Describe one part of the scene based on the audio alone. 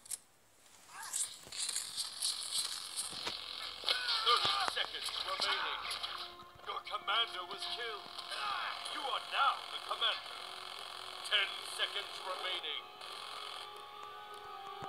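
Guns fire and explosions crackle in a shootout.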